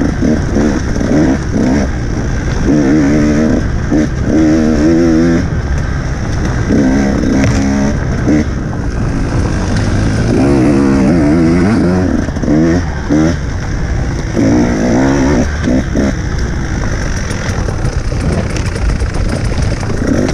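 Tyres bump and rattle over a rough forest trail.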